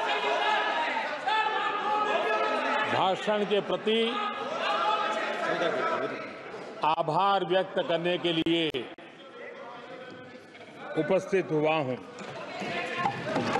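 An elderly man speaks forcefully into a microphone in a large echoing hall.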